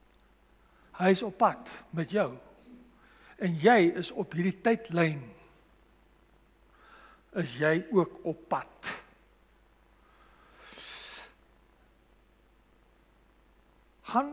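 A man preaches calmly into a microphone.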